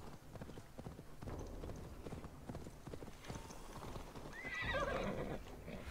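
A horse's hooves thud at a walk on a dirt path.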